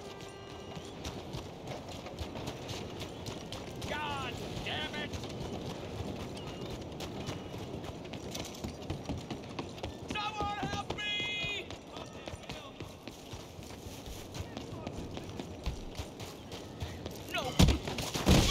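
Footsteps run on dirt and gravel.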